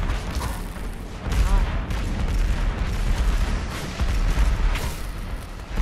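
Heavy game music pounds with deep bass.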